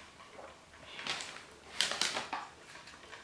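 A paper bag of chips rustles and crinkles.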